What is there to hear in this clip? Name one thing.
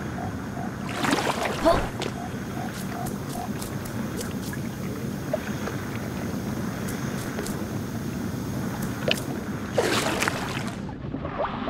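Water splashes loudly as a small figure breaks through the surface.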